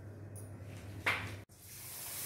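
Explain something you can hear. A metal bowl clinks on a hard counter.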